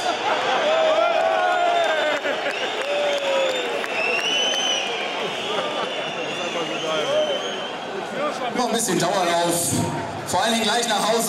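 A large stadium crowd chants and sings loudly.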